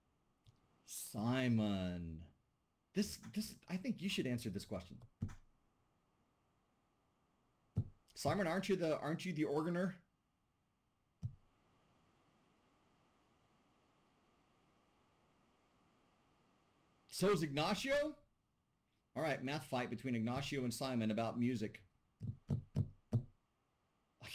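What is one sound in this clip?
A man speaks calmly over an online call, in bursts with pauses.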